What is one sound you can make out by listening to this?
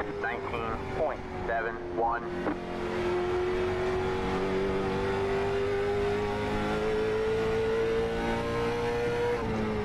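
A racing car engine drones steadily, its pitch slowly rising.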